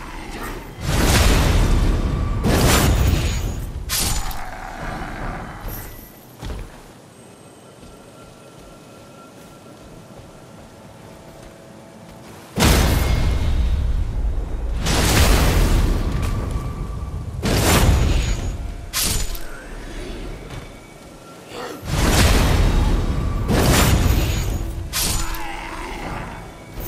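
Swords slash and strike with heavy metallic hits.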